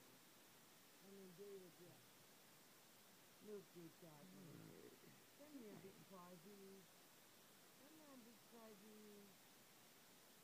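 A kitten mews softly.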